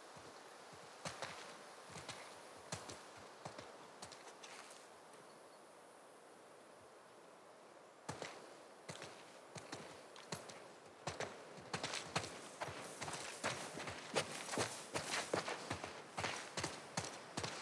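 Footsteps crunch on a path and then swish through dry grass.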